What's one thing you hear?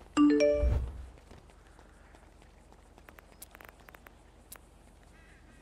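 Footsteps patter quickly on a paved path.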